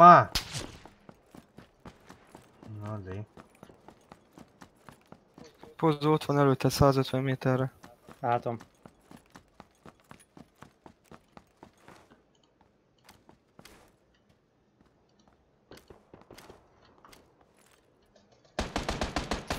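Footsteps patter quickly over dry ground.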